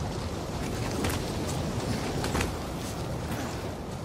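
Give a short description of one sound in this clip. Molten lava rumbles and churns nearby.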